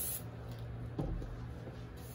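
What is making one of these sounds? A can is set down on a table with a knock.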